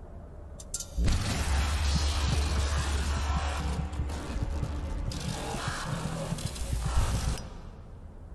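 A monstrous creature roars loudly and harshly up close.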